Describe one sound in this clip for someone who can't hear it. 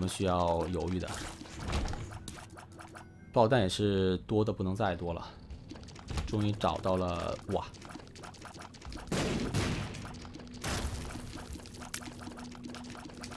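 Arcade-style shots pop and splat in quick bursts.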